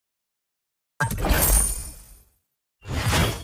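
A short victory jingle plays.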